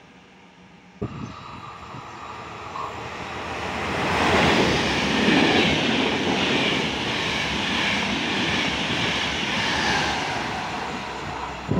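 A train rushes past close by, rumbling and roaring loudly.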